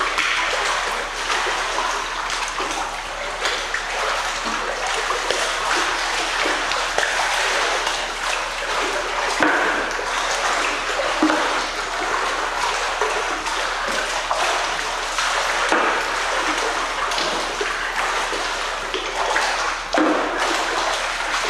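A person splashes and thrashes through water.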